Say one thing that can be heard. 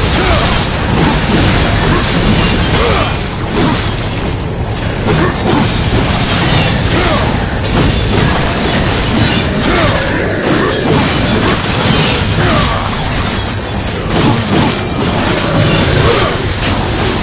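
Blades slash and clang in a fast, busy fight.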